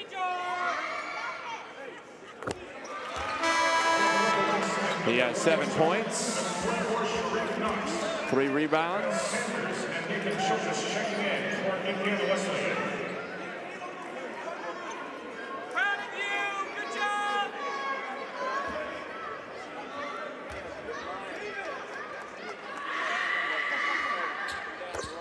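A crowd murmurs and cheers in a large echoing arena.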